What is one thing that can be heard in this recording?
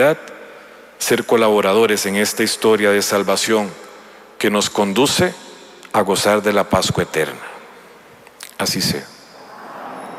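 A man sings a chant through a microphone in a large echoing hall.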